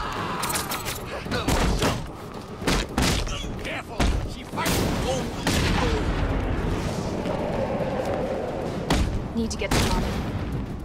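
Heavy punches and kicks land with loud thuds.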